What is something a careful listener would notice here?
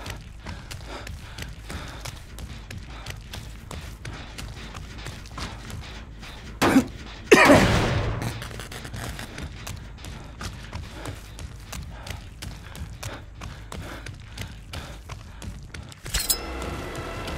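Footsteps crunch quickly over the ground.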